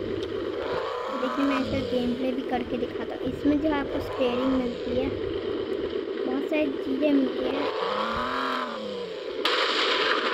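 Tyres screech during sharp turns.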